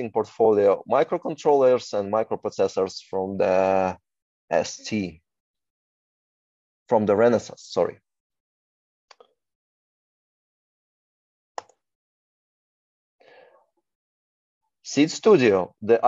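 A man speaks calmly through an online call, with pauses.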